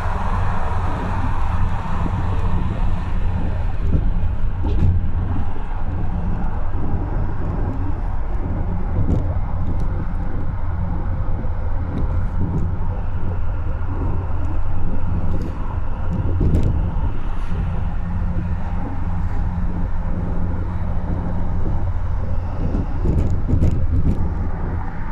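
A steady low rumble of a car driving fast on a highway.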